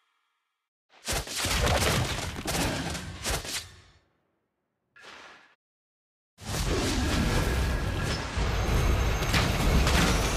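Video game fighting sounds clash and burst in quick, noisy blasts.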